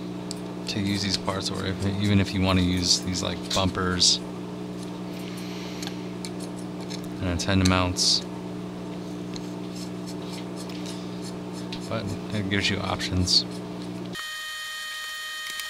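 A screwdriver turns small screws into a frame.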